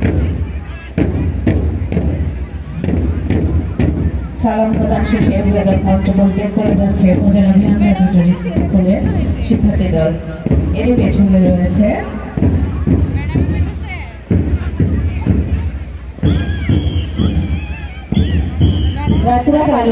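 Children beat hand drums in a steady rhythm outdoors.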